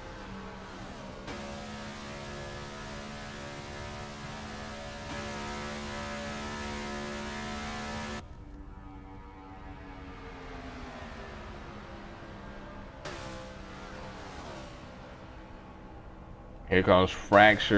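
Race car engines roar at high speed.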